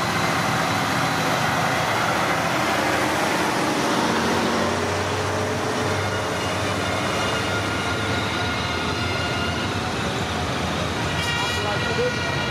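Heavy truck engines rumble as military trucks drive past.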